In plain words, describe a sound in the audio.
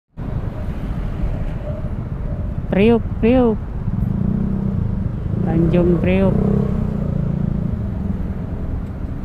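Motorcycle engines idle and rumble close by in slow traffic.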